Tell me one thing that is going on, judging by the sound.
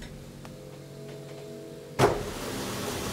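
Elevator doors slide shut with a thud.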